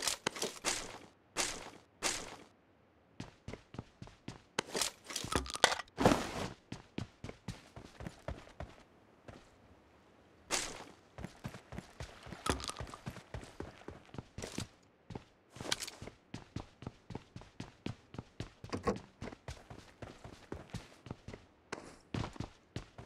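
Footsteps patter quickly across hard floors and ground.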